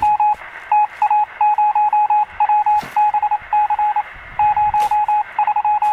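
A spade chops and scrapes into grassy soil.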